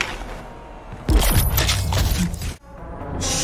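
A monster snarls and roars up close.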